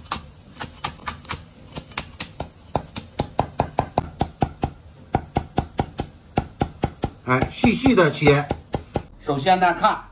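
A cleaver chops rapidly on a wooden board.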